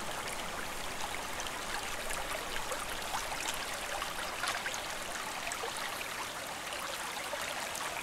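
Water laps and splashes softly against a small boat gliding along.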